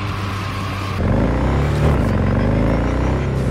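A motorcycle engine revs loudly.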